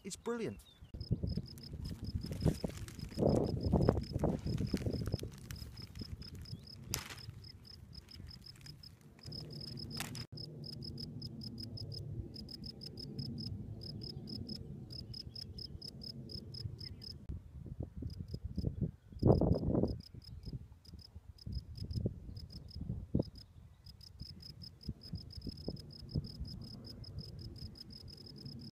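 A cricket chirps in rapid, steady bursts of high trills.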